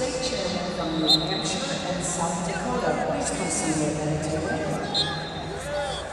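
Wrestlers' shoes squeak on a mat.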